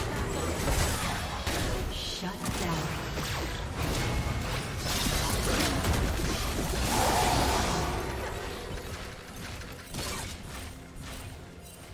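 Magic spells whoosh and blows crash in a fast battle.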